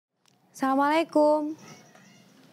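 A woman calls out a greeting.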